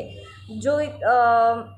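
A young woman sings a short phrase close by.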